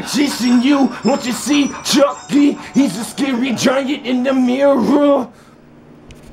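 A man speaks loudly and angrily, close by.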